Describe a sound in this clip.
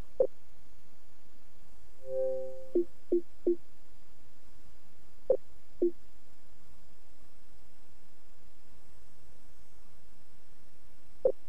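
Short electronic menu blips sound as selections change.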